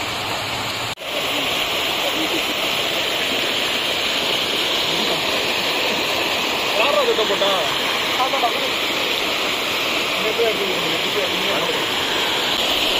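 Water cascades and splashes loudly over rocks.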